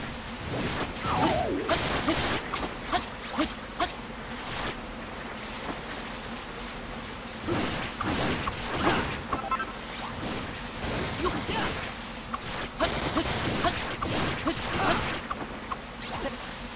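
A sword slashes and thuds against creatures in quick bursts.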